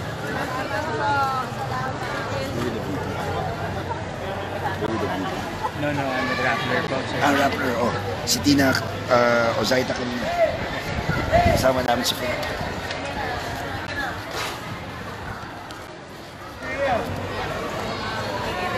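A crowd of women and children chatter and laugh nearby.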